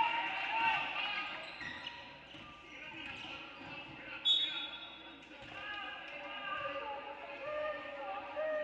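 Players and spectators call out in a large echoing gym.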